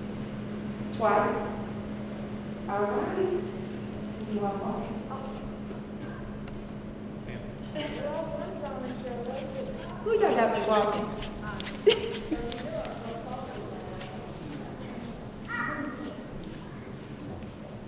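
A young woman speaks into a microphone in a large echoing hall.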